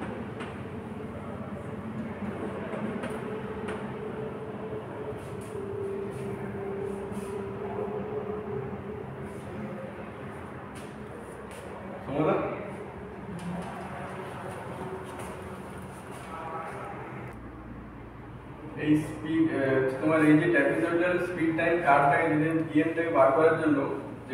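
A man speaks through a microphone, explaining calmly.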